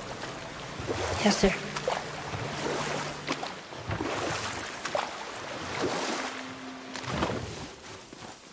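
Water rushes and splashes around a small boat.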